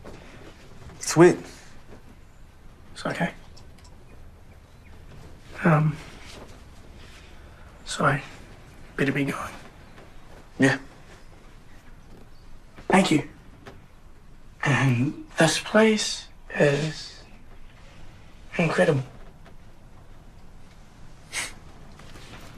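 A young man speaks quietly in short phrases, close by.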